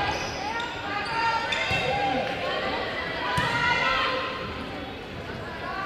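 A crowd cheers and chatters in a large echoing gym.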